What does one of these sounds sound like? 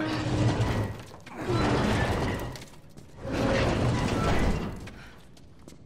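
A heavy metal door scrapes loudly as it is shoved open.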